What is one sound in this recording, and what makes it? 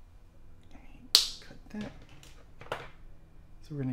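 A plastic bottle cap clicks open and shut.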